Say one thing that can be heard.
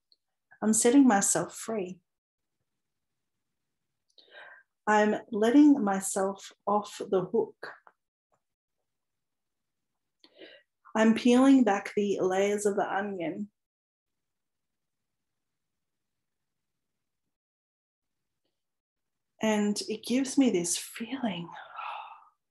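A woman talks in short bursts, close to the microphone.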